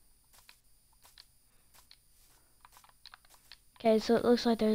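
Footsteps crunch softly on grass.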